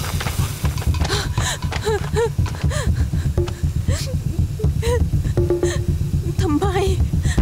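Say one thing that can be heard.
A young woman cries and pleads in a trembling voice, close by.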